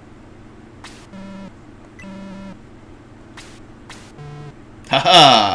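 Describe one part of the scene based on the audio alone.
Short electronic beeps chirp in quick runs.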